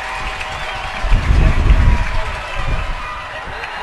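Football players crash together with dull thuds.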